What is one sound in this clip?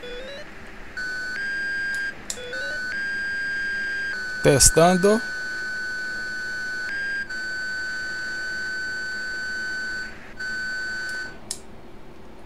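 A warning tone sounds in a steady, high beep.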